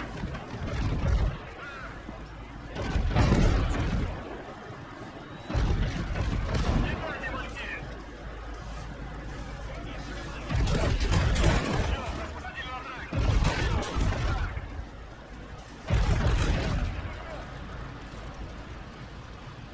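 Explosions rumble in the distance.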